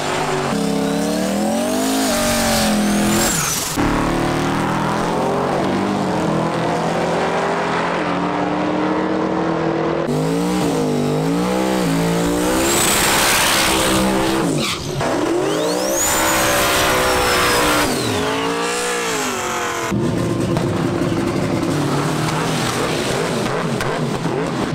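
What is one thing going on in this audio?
Loud race car engines rev hard and roar.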